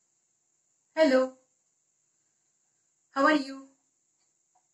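A middle-aged woman speaks calmly and clearly into a nearby microphone, in short phrases with pauses.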